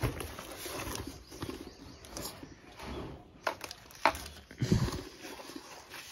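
A fabric bag is handled with soft thumps.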